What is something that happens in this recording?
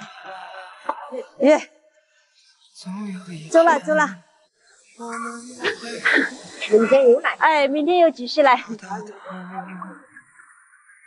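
An older woman talks from a short distance.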